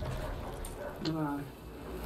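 A sword clangs against a skeleton.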